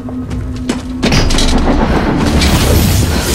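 A heavy blast booms and roars.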